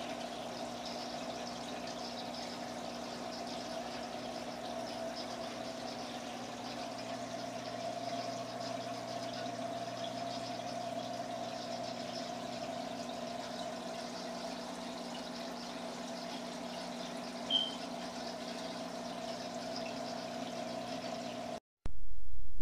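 Aquarium filters hum and water trickles steadily.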